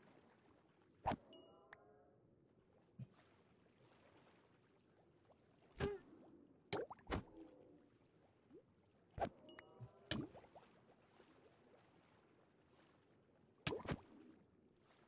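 Sharp blows strike an underwater creature again and again.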